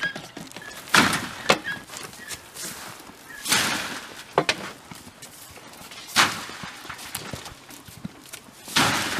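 Hay rustles as it is tossed over a fence.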